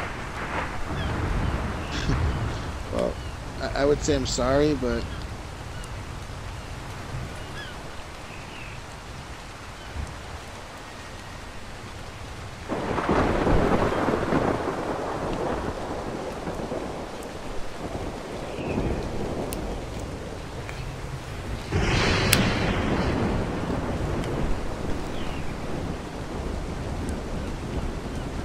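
A man talks calmly and casually close to a microphone.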